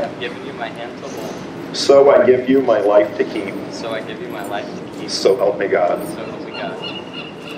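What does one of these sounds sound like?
A man speaks calmly and clearly nearby.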